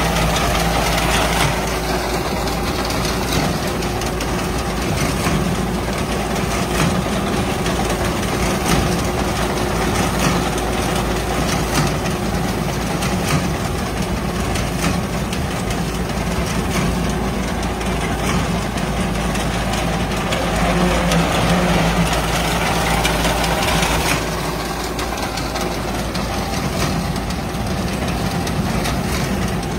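A reaper blade clatters as it cuts through dry wheat stalks.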